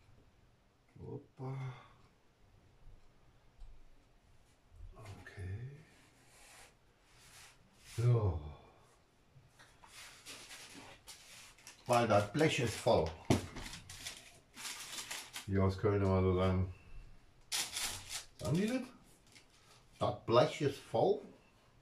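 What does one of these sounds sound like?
A middle-aged man talks calmly and close by, in short bursts.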